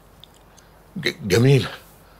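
A man speaks a short word nearby.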